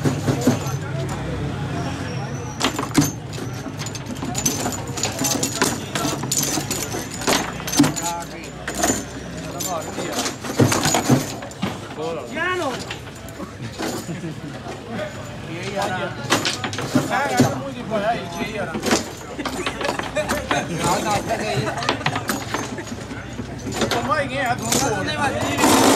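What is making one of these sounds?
Men nearby talk with excitement.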